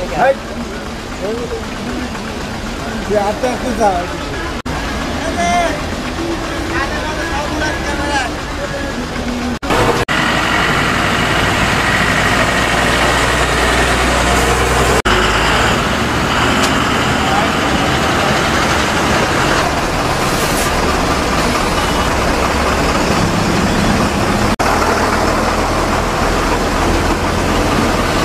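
Truck engines idle with a low, steady rumble.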